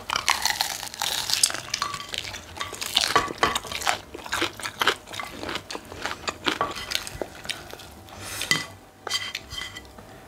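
A woman chews and smacks her lips close by.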